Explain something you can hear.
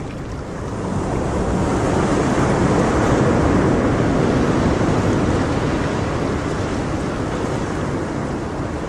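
Water gurgles and bubbles steadily in a fish tank.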